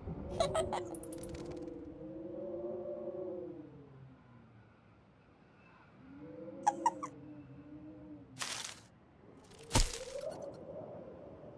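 Short chiming game sound effects ring out.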